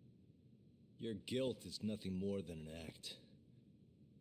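A man speaks coldly and calmly in a low voice.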